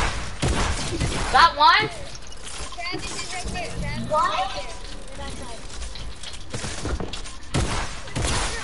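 Game building pieces snap into place with hollow knocks.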